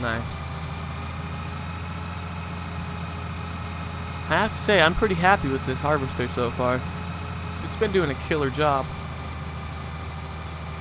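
A combine harvester engine drones steadily.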